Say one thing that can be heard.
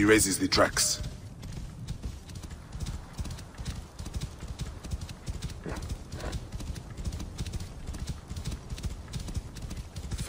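A horse's hooves thud rapidly on sand at a gallop.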